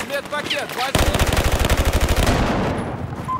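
An automatic rifle fires rapid bursts close by.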